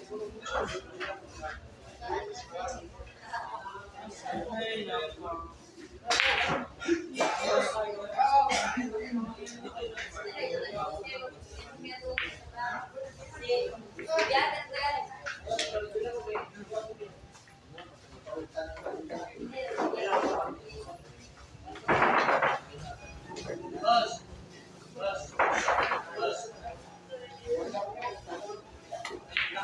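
Men chatter in a crowd nearby.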